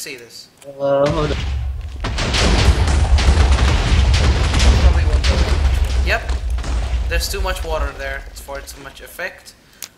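Explosions rumble and boom in a long chain.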